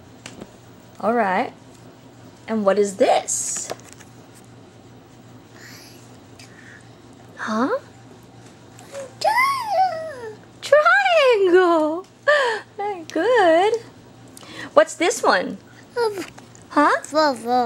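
A toddler squeals and babbles happily close by.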